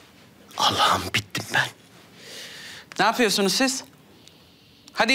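A young man speaks in a hushed, desperate voice close by.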